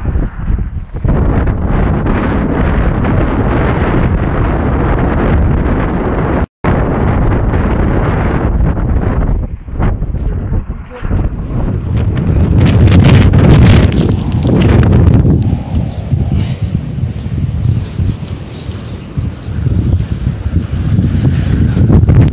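Strong wind roars and buffets the microphone outdoors.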